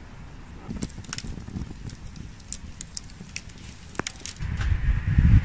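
Burning logs crackle and pop.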